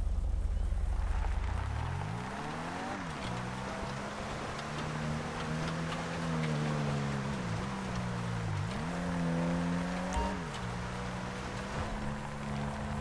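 Tyres crunch over gravel and dirt.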